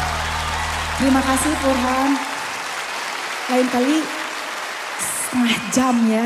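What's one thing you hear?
A woman sings through a microphone over loudspeakers.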